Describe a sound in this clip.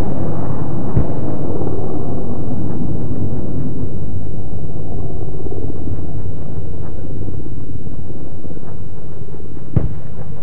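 Distant explosions boom and rumble.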